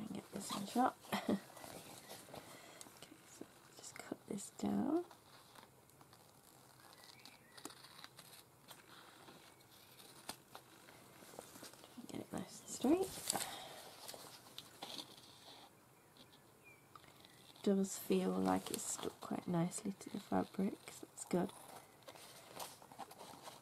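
A sheet of paper rustles against fabric.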